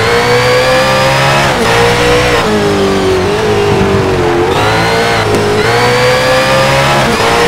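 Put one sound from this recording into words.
A race car engine roars loudly, its pitch rising and dropping with gear shifts.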